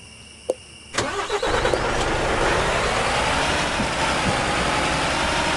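A truck engine starts and idles with a steady rumble.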